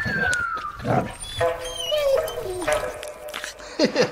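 A dog pants.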